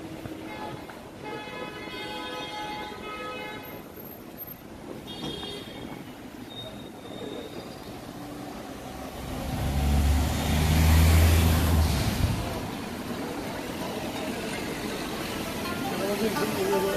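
Street traffic hums steadily in the background.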